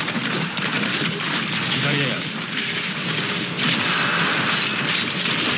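Magic spells crackle and blast in rapid bursts.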